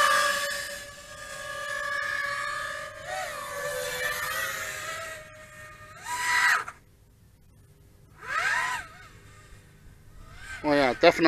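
Small drone motors whine loudly, their pitch rising and falling in bursts, with brief quiet gaps.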